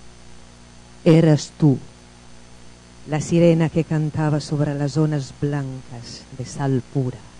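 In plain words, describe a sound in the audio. A woman speaks calmly into a microphone, heard through loudspeakers in a large room.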